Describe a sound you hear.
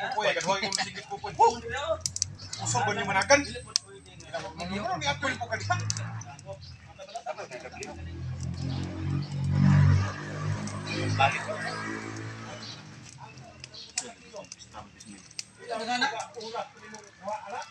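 Fire crackles under cooking pots.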